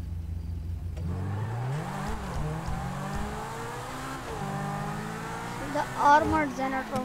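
A sports car engine revs up and roars as the car speeds away.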